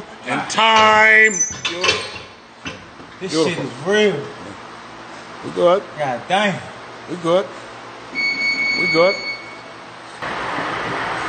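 A man talks close by with animation, straining between words.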